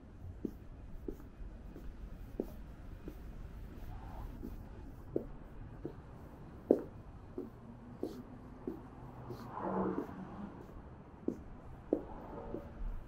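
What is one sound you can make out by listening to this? Footsteps tap steadily on stone paving.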